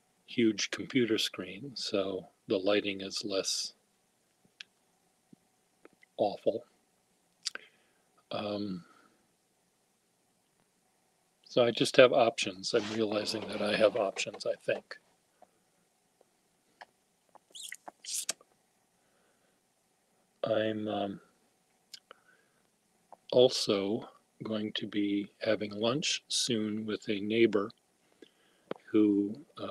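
A middle-aged man talks calmly and close to a microphone over an online call, with pauses.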